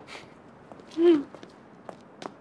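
A young woman cries out briefly.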